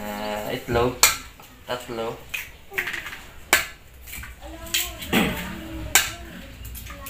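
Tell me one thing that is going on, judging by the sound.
Eggs crack against the rim of a metal pot.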